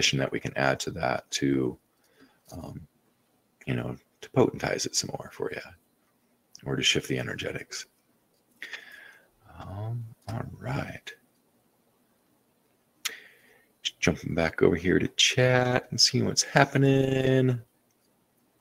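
A middle-aged man speaks calmly into a microphone, heard close up as if over an online call.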